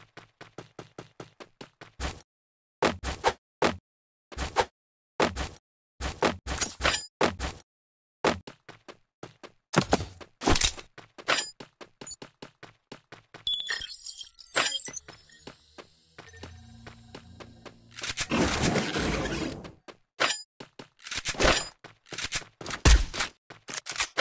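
Quick footsteps run over grass.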